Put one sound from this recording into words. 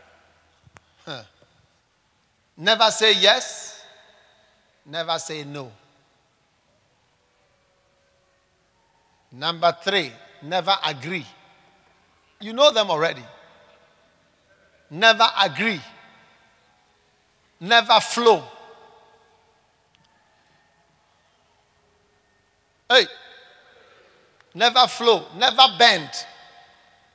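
A man speaks with animation into a microphone over a loudspeaker, in short bursts with pauses, in a reverberant hall.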